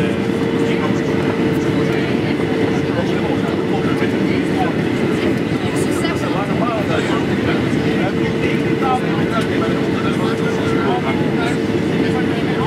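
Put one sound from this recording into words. Jet engines roar steadily through an aircraft cabin.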